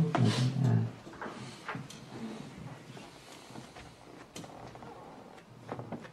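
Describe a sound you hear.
Elderly men and women murmur a prayer together nearby.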